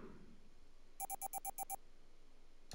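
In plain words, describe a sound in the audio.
A menu beeps.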